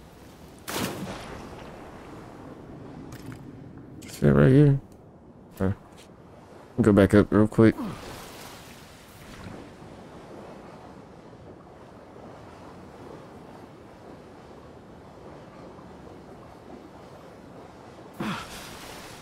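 Water swirls and rumbles in a muffled way underwater.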